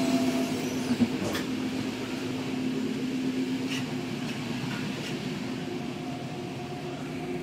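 A train rumbles and hums steadily while moving.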